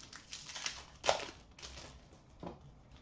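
Plastic wrapping crinkles in hands.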